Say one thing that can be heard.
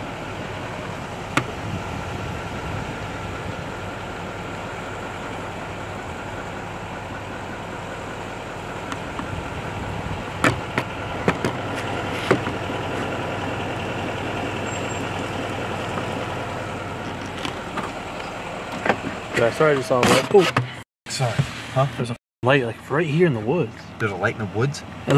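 A vehicle engine hums steadily while driving slowly.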